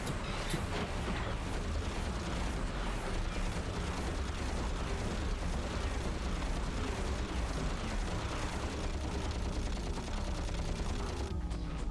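Guns fire rapid shots.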